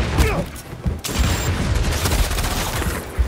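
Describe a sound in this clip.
An explosion booms and debris clatters.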